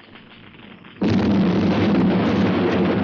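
A loud explosion roars.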